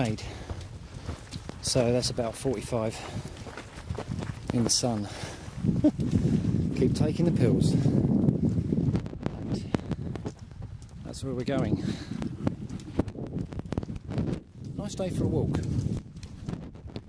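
A man talks breathlessly close to a microphone.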